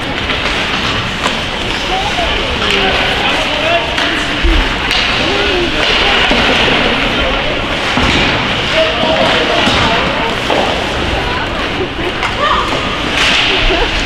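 Ice skates scrape on ice in the distance.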